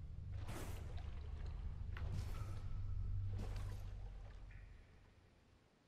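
Footsteps in clinking armour walk on stone.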